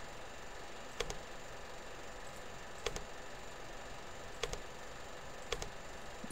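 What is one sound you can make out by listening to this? Switches click in quick double clicks, again and again.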